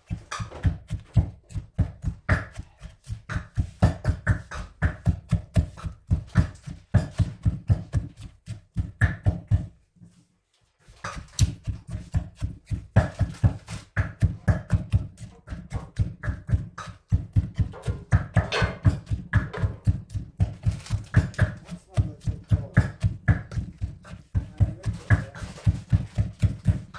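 A wooden pestle pounds rapidly and steadily in a wooden mortar with dull thuds.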